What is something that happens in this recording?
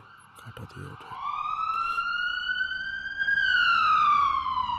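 A siren wails, rising and then falling in pitch.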